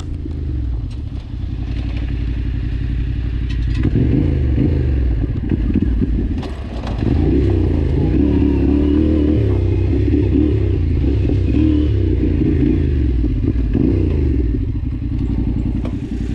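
A motorcycle engine rumbles and revs while riding.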